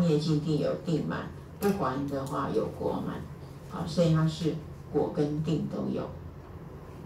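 An elderly woman speaks calmly and close by, muffled by a mask.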